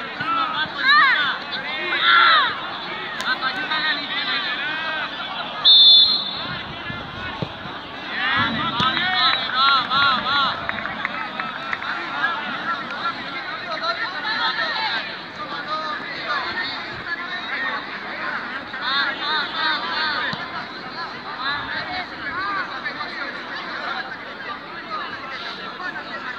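Children and adult spectators shout and cheer excitedly nearby, outdoors.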